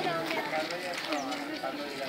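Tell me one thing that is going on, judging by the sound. A crowd of men and women talk nearby.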